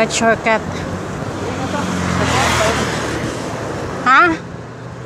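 A car passes by on a road outdoors.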